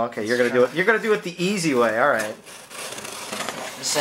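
A knife slices through packing tape on a cardboard box.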